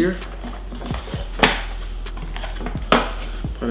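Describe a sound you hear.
Cardboard packaging rustles and scrapes as a box is opened.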